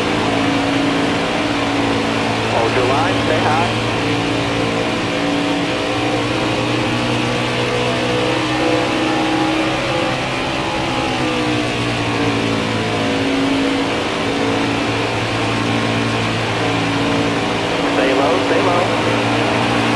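Other racing engines whine past nearby.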